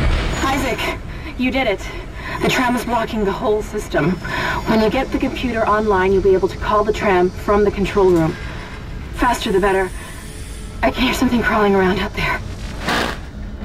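A young woman speaks calmly over a radio.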